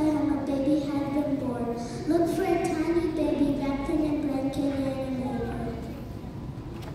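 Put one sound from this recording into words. A girl sings into a microphone in a large hall.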